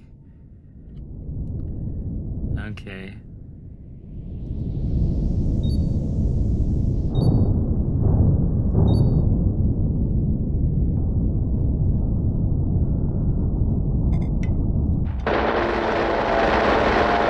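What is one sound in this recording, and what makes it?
A deep engine rumble drones steadily.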